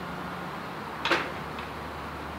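A railway signal arm drops with a sharp metallic clank.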